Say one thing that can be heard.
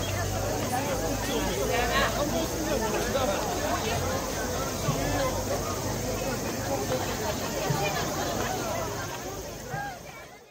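Men chant together in rhythm.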